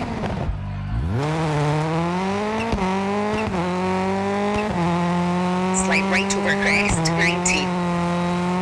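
A rally car engine revs hard and shifts up through the gears.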